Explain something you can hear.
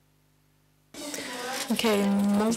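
A young woman speaks to an audience through a microphone in a large room.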